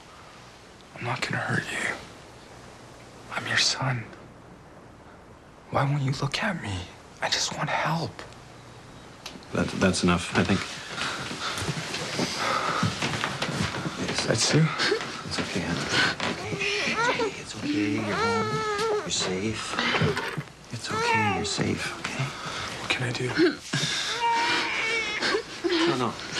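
A young man speaks with emotion, close by.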